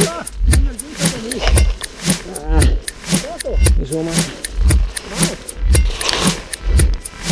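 Footsteps crunch through dry leaves at a steady pace.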